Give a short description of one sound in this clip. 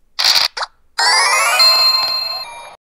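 A short cheerful jingle plays with rising chimes.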